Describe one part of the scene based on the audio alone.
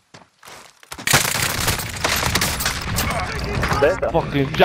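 An explosion booms and debris clatters loudly.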